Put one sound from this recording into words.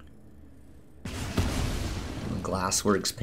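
A magical burst whooshes and crackles.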